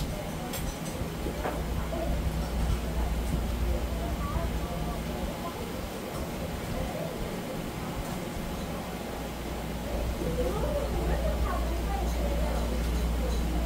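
A knife slices softly through raw fish.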